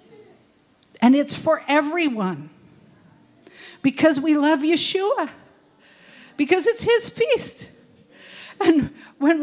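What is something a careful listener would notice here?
An elderly woman speaks with feeling into a microphone, heard through a loudspeaker in a room.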